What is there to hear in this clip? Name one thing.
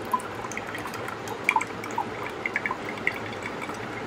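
A thick drink pours into a glass.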